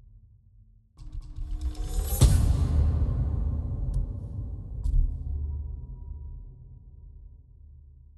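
A loud booming swell with a bright ring rises and slowly fades.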